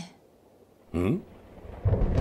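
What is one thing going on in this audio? A young woman lets out a short, puzzled exclamation.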